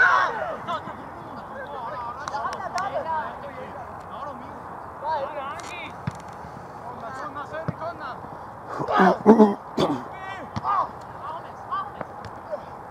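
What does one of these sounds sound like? Young men shout and call to each other outdoors across an open field.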